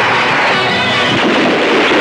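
An explosion bursts with a loud roar.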